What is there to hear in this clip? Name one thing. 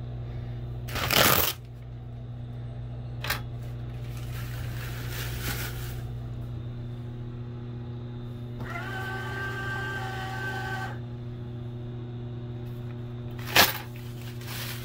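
Paper towel tears off with a sharp rip.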